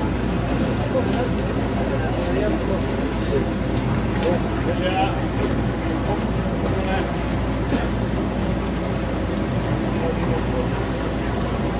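Water laps gently against a wooden boat.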